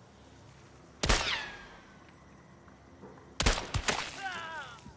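A rifle fires loud single shots that ring out and fade.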